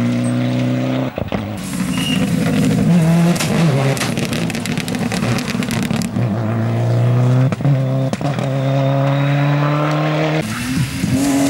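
A rally car engine roars and revs hard as it races past.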